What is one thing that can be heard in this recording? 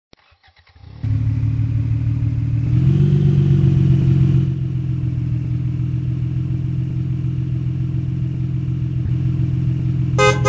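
A truck engine rumbles steadily and revs up briefly.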